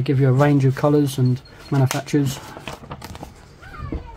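Paper rustles as a sheet is handled and turned.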